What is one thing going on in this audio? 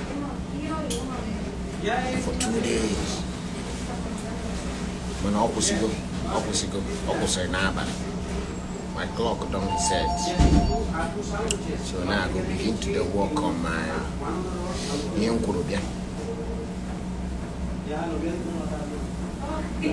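A young man speaks casually and close to a phone microphone.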